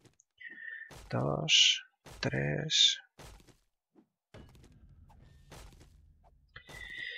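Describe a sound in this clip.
A pickaxe strikes wood with dull thuds.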